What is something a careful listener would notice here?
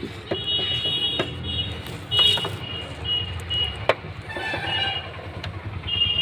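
Pliers clink against a metal fitting.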